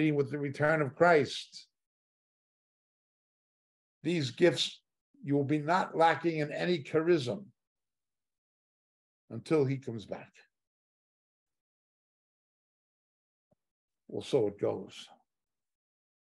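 An older man speaks calmly and close to a microphone, with long pauses.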